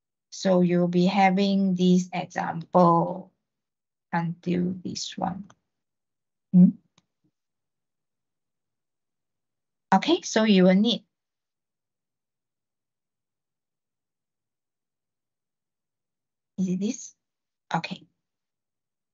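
A young man speaks calmly over an online call, in short bursts.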